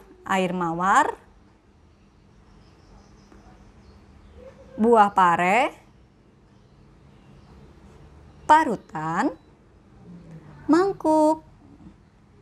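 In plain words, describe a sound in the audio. A woman says short words calmly, close by.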